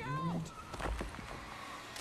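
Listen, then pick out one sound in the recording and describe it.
A car engine roars as it approaches.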